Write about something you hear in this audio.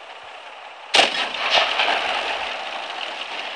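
A shell explodes with a loud boom near a tank.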